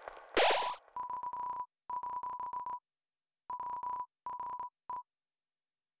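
Short electronic blips beep in quick runs as video game dialogue types out.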